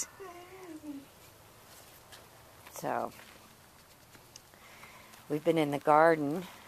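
A small puppy whines and yelps close by.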